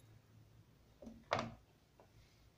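A glass knocks down onto a tray.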